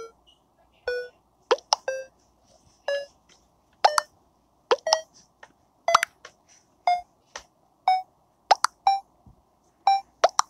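Short electronic beeps sound about once a second.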